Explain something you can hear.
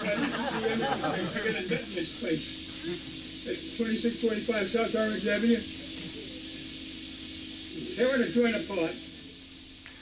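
An elderly man talks on a phone close by.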